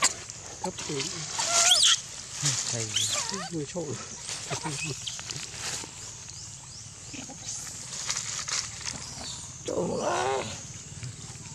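A young macaque squeals in high, wavering cries.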